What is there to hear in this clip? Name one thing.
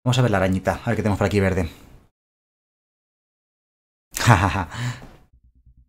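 A man speaks with animation, close to a headset microphone.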